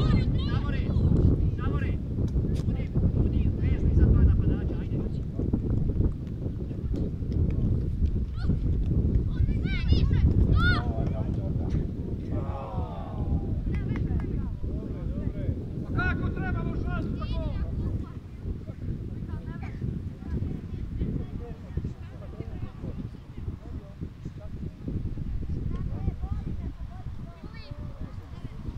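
Young men shout to each other at a distance outdoors.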